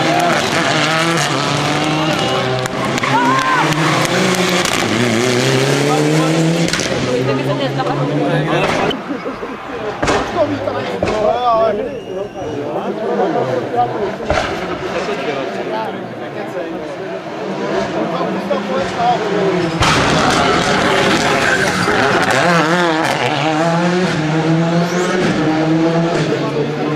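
A rally car engine roars and revs hard as the car speeds past.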